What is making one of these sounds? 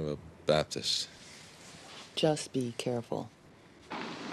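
A man speaks softly up close.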